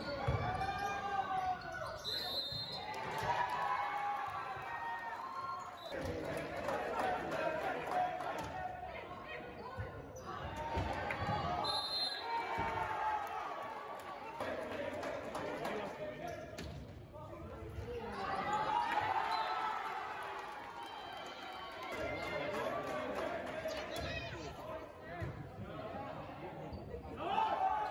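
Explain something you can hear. A crowd of young spectators cheers and chatters in a large echoing gym.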